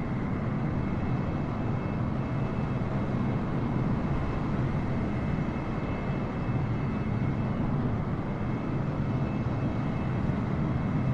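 Jet engines roar steadily as an airliner flies by.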